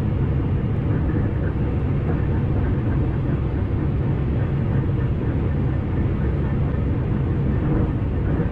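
A train rumbles steadily along the rails at high speed.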